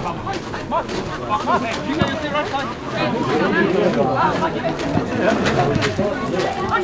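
Young men shout and call to each other in the distance outdoors.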